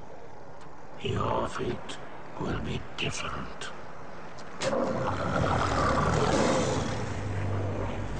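A man speaks in a deep, growling voice close by.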